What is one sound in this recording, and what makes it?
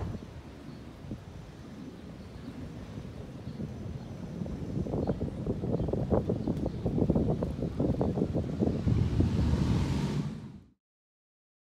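Wind blows and rustles through palm trees outdoors.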